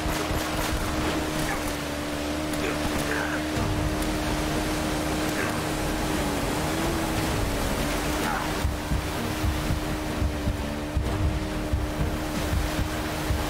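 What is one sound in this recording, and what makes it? Water splashes and rushes around a jet ski.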